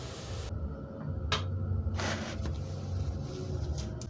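A metal spoon scrapes and clinks against a bowl.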